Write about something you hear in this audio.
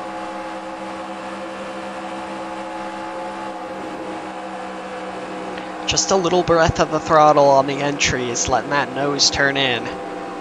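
A racing car engine drones at a steady high pitch.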